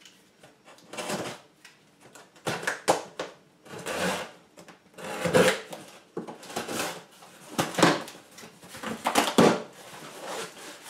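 A utility knife slices through packing tape on a cardboard box in short scraping strokes.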